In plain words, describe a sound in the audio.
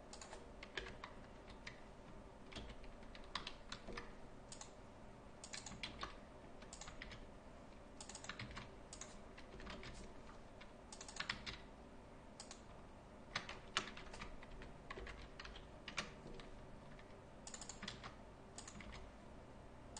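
Keys clack on a computer keyboard.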